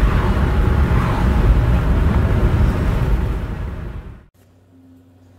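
Tyres roar steadily on the road from inside a moving car.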